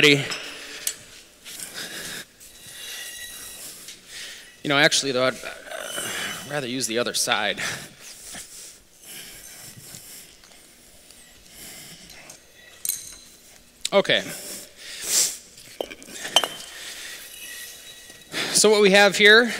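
Concrete blocks scrape and thud on a hard floor.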